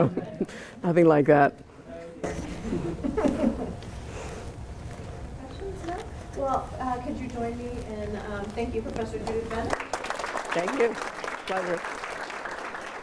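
A middle-aged woman speaks to an audience through a microphone.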